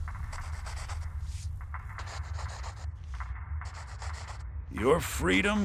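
A quill pen scratches on paper in short strokes.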